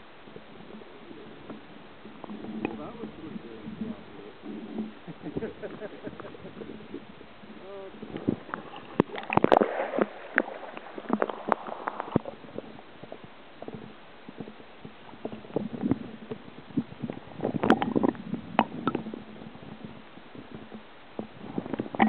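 Water gurgles and splashes around the microphone.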